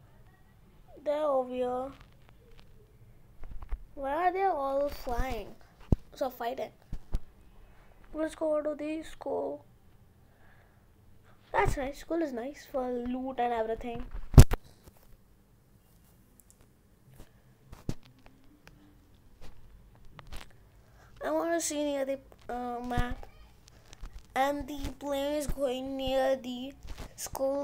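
A boy talks with animation close to a microphone, in bursts with pauses.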